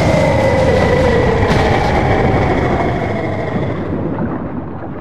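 A monster roars as it sinks into lava.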